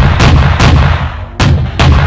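An aircraft explodes with a loud bang.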